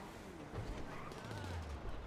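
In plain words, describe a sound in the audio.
A car engine idles nearby.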